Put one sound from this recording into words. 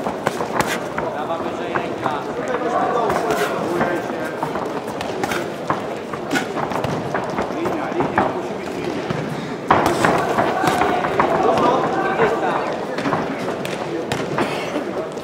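Boxing gloves thud against a boxer's body and gloves.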